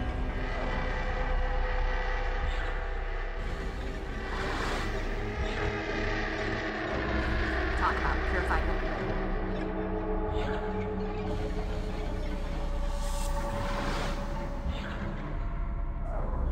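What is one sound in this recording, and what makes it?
Menu selection chimes sound in short bursts.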